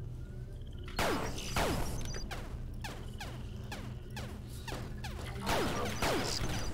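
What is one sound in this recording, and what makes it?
Rapid gunshots fire in bursts, with a sharp ringing tail after each shot.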